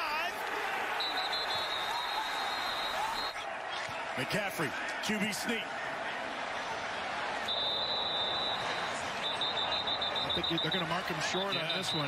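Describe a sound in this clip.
A referee blows a shrill whistle.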